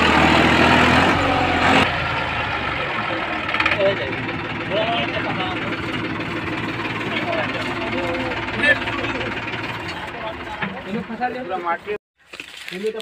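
A diesel tractor engine labours under load.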